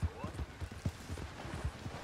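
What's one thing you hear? A horse splashes through shallow water.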